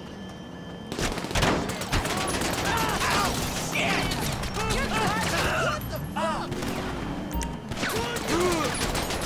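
A pistol fires repeated sharp shots.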